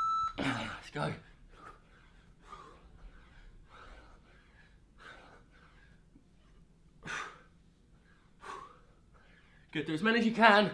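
A man breathes hard while exercising.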